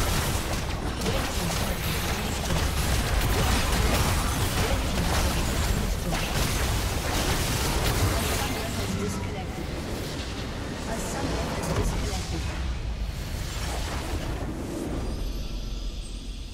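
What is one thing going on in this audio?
Game spell effects and weapon impacts crash and boom in a dense battle.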